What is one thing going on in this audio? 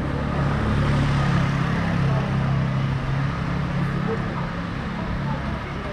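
A scooter engine hums nearby and passes.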